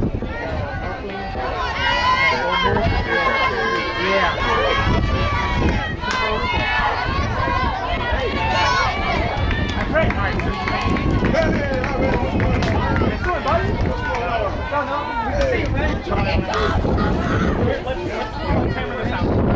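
Young girls shout and cheer excitedly outdoors.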